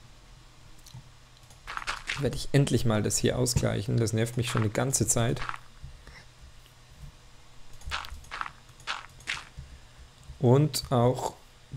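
Soft thuds of dirt blocks being placed, one after another.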